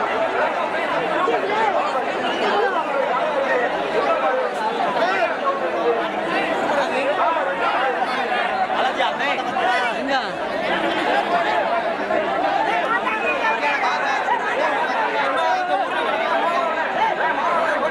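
A large crowd of men shouts and cheers outdoors.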